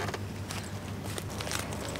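Sandals slap on a paved path as a woman walks.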